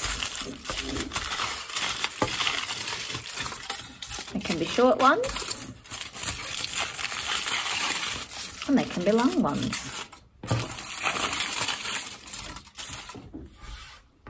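Foil crinkles and rustles as it is handled.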